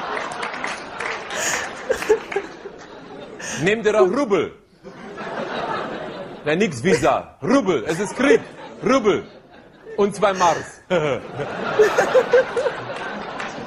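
A young woman laughs heartily close by.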